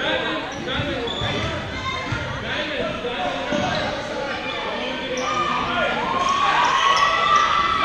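Spectators chatter and call out in a large echoing gym.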